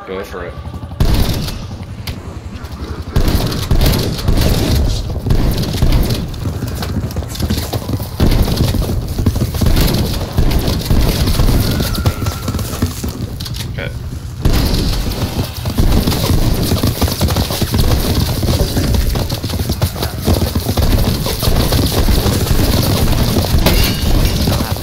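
A shotgun fires again and again.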